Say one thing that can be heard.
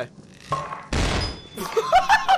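A flashbang bursts with a loud bang.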